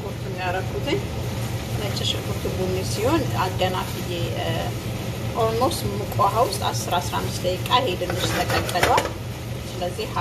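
A spoon clinks and scrapes against a pot.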